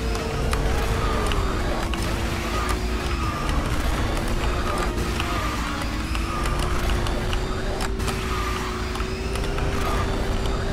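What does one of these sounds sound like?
A kart engine hums steadily at high speed.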